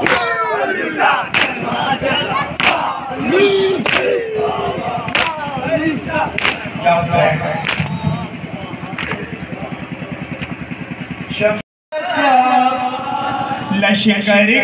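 A crowd of men chants loudly together through a loudspeaker.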